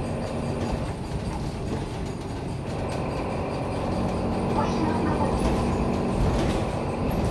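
A bus body rattles and creaks over the road.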